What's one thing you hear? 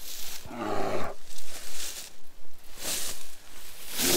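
Footsteps rustle through leafy undergrowth outdoors.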